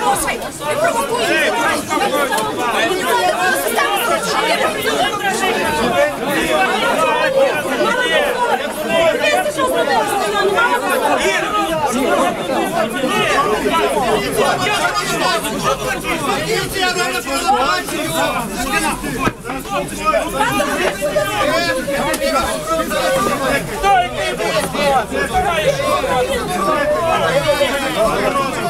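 A crowd of men and women shout and argue loudly close by.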